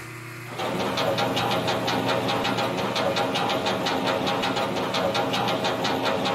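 A roller coaster chain lift clanks in a fast, steady rhythm as a car climbs.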